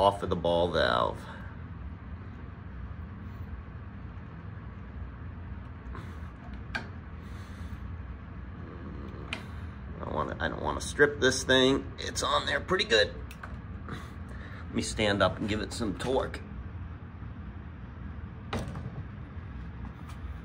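A metal wrench clicks and scrapes against a pipe fitting.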